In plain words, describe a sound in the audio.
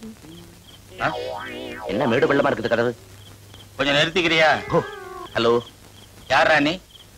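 A man speaks loudly with animation, up close.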